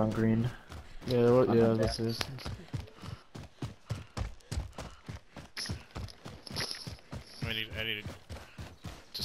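Footsteps crunch quickly over snowy ground.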